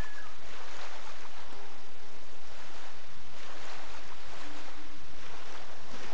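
Water splashes as a swimmer strokes through a calm pond.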